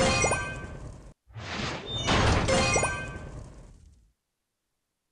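A bright magical chime sparkles with a whoosh, then fades.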